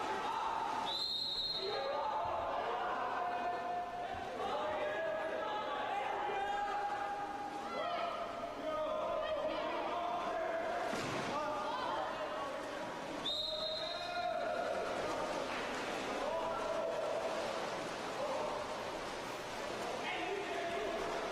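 Players shout to each other across the pool.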